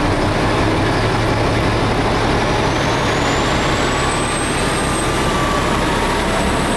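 A diesel locomotive rumbles loudly as it pulls into the station.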